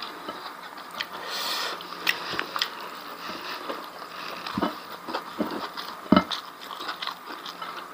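Fingers squish and pick through rice.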